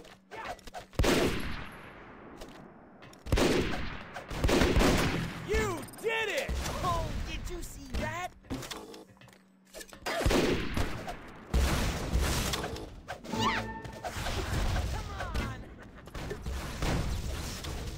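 Gunshots fire in a game, sharp and loud.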